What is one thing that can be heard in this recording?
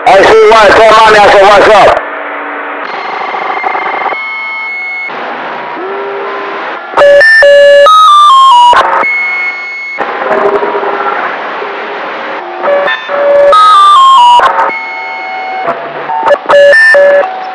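A shortwave radio receiver hisses with static and warbling, whistling tones.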